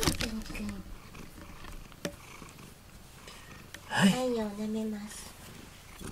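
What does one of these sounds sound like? A cat meows softly up close.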